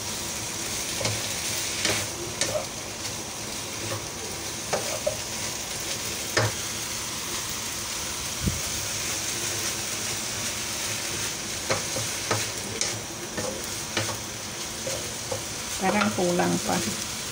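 A spatula scrapes and knocks against a frying pan.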